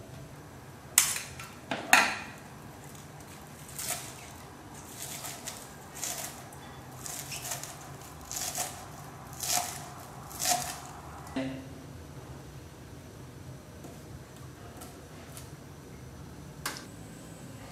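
A knife chops green onions on a cutting board.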